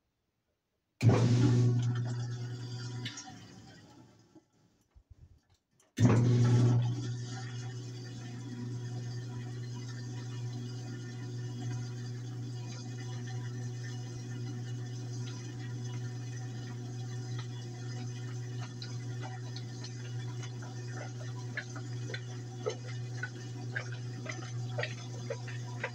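A washing machine hums steadily as its drum spins.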